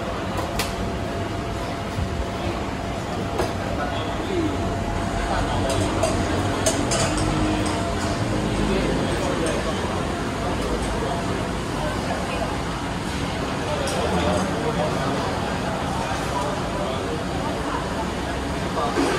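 A crowd of people chatters in the background.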